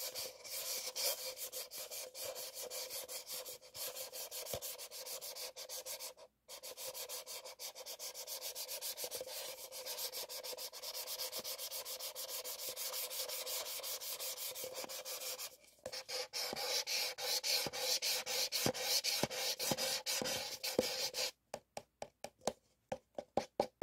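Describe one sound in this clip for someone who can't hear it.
Paper cups rub and scrape against each other in rapid, crinkly strokes.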